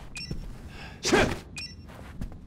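A single gunshot rings out.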